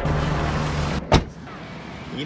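A car door slams shut.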